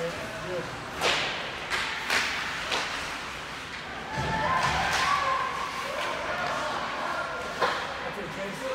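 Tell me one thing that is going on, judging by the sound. Hockey sticks clack sharply against the puck and the ice in a large echoing rink.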